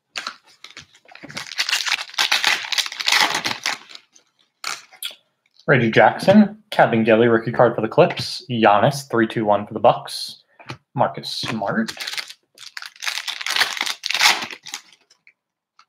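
A foil wrapper crinkles and tears open close by.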